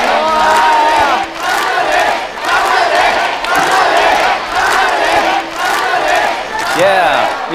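A crowd cheers and claps loudly.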